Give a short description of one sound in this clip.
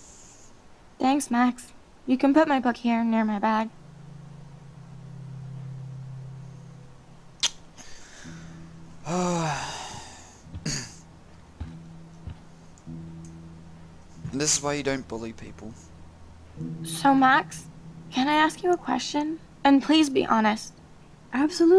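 A young woman speaks softly and hesitantly.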